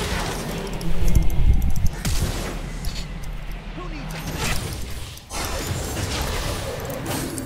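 Video game spells whoosh and crackle during a fight.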